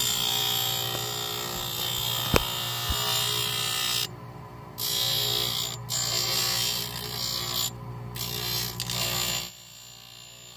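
A polishing wheel whirs and grinds against a plaster model.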